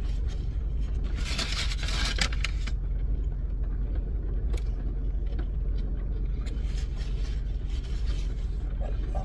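Paper wrappers rustle and crinkle.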